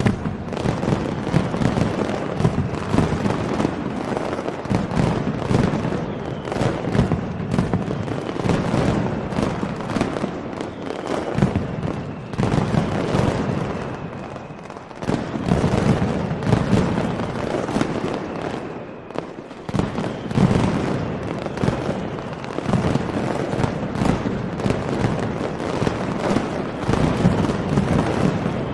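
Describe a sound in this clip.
Firecrackers explode in rapid, deafening bursts, echoing outdoors.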